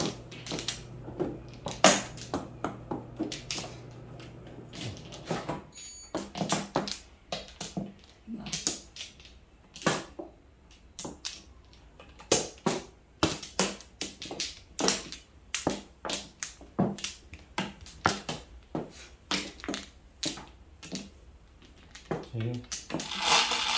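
Mahjong tiles clack sharply against each other and the table, again and again.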